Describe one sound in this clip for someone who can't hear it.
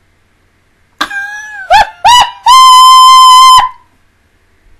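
A young woman shrieks loudly into a close microphone.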